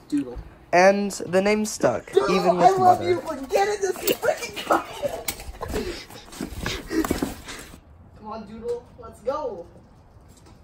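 Young men talk and laugh with excitement close by.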